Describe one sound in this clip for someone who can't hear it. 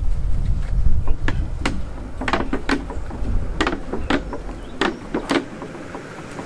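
A hand water pump squeaks and clanks in a steady rhythm.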